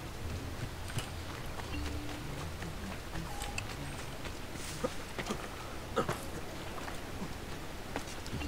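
Footsteps run quickly across wooden boards.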